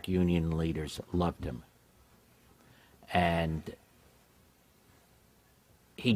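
A middle-aged man speaks slowly and calmly into a microphone, with pauses.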